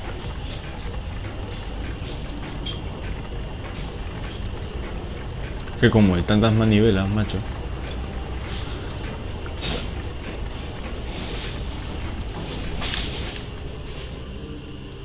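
A heavy stone mechanism grinds and rumbles.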